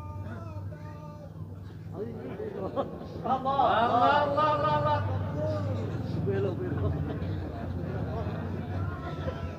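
A man sings melodically into a microphone, heard through a loudspeaker.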